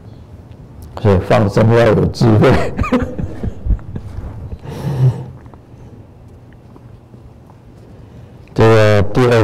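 An elderly man reads aloud into a microphone.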